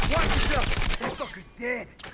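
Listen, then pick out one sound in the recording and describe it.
An assault rifle fires a burst of shots.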